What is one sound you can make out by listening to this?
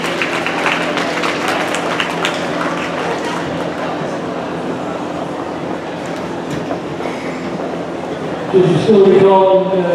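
Ballroom dance music plays over loudspeakers in a large echoing hall.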